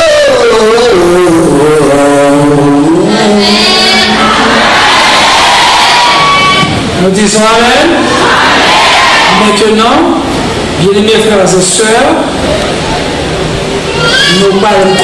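A young man sings loudly through a microphone and loudspeakers.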